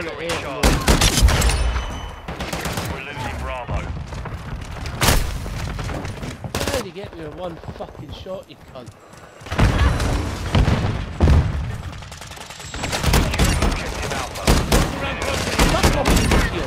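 Guns fire in rapid bursts.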